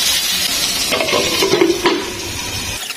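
A glass lid clatters onto a metal pan.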